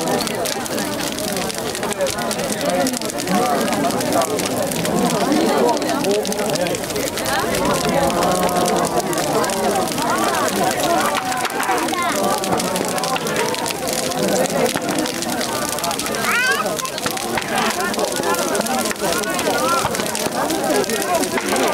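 A large bonfire crackles and roars outdoors.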